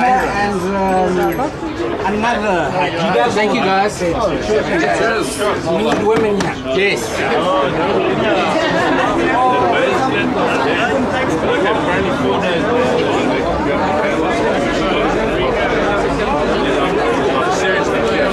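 Men talk and laugh together close by, outdoors.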